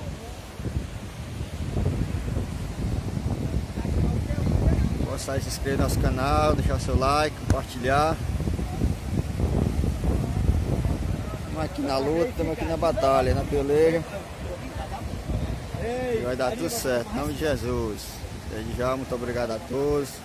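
Waves break on a beach nearby.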